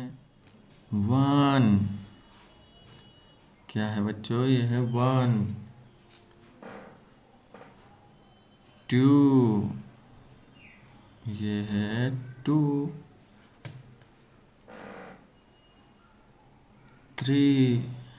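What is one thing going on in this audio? A felt-tip marker squeaks softly across paper.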